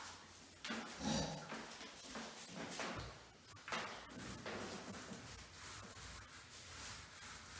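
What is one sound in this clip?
A paint roller rolls over a wall.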